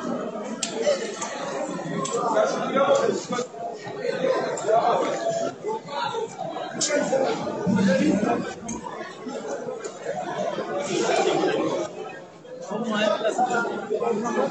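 A crowd of men chants and sings together in a loud, echoing hall.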